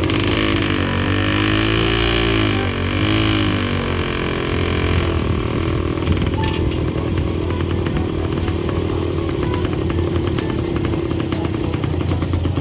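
A small motor engine hums and revs unevenly while driving slowly.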